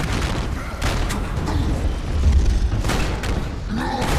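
An explosion booms with crackling sparks.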